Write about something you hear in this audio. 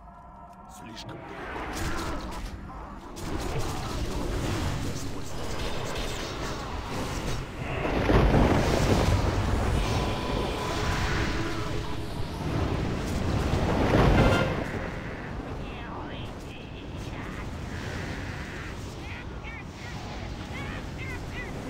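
Spell blasts and weapon clashes ring out in a busy game battle.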